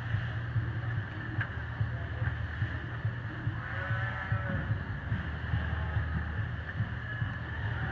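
A calf sucks and slurps noisily at a bottle.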